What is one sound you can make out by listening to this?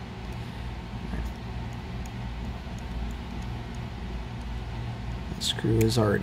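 A small screwdriver turns a tiny screw with faint clicks.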